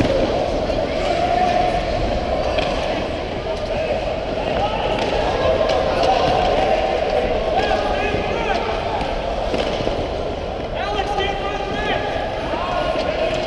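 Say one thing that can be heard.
Ice skates scrape and hiss steadily across an ice rink.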